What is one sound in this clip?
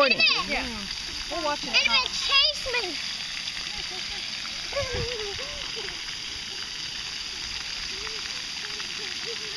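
Water sprays softly from fountain jets.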